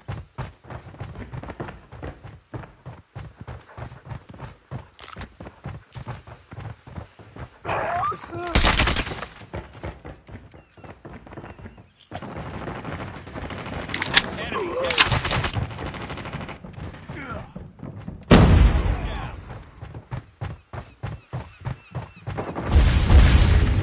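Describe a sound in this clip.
Quick footsteps thud on a wooden deck.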